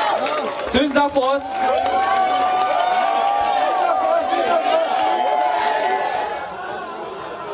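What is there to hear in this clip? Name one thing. A rock band plays loudly.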